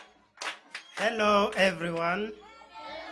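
A choir of children sings loudly together.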